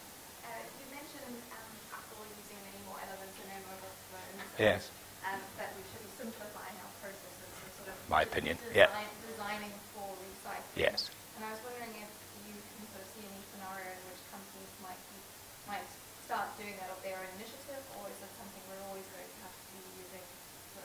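A man speaks calmly and steadily, as if giving a talk.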